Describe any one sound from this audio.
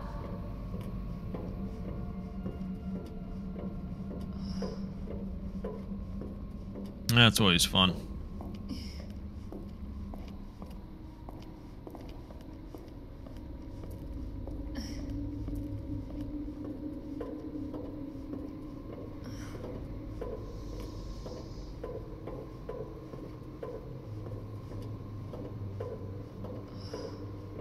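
Footsteps fall on hard floors and metal grating.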